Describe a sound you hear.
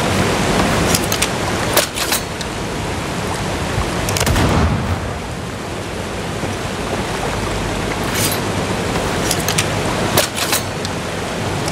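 Water rushes and splashes steadily close by.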